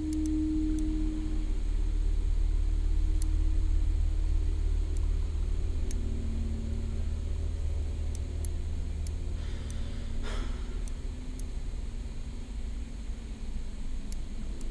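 A combination lock's dials click as they turn.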